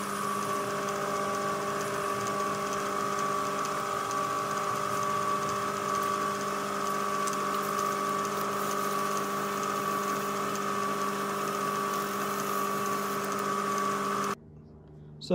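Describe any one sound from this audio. A metal lathe whirs steadily as it spins.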